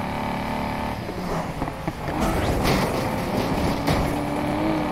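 A car crashes through debris with loud bangs and clatter.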